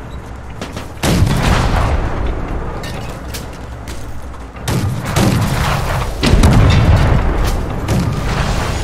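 Explosions boom loudly and echo.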